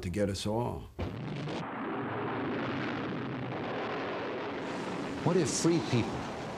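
Rocket engines roar steadily as missiles lift off.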